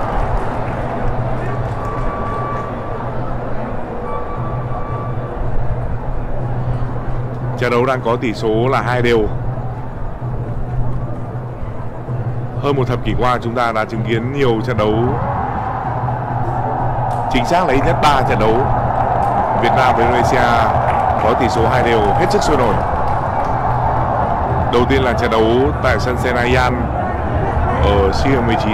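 A large stadium crowd roars steadily, growing louder later on.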